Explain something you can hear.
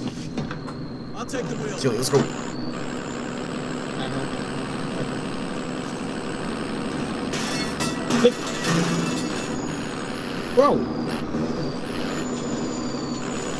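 A heavy truck engine rumbles steadily as the truck drives.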